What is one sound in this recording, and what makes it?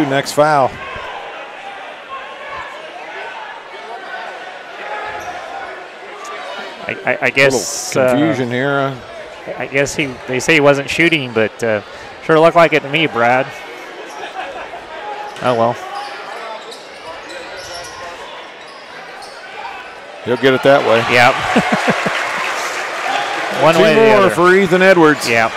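A large indoor crowd murmurs throughout in an echoing gym.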